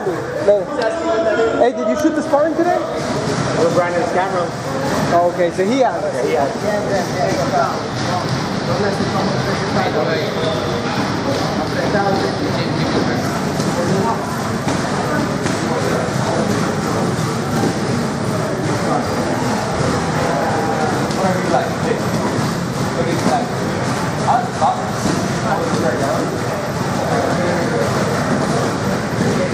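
A man talks.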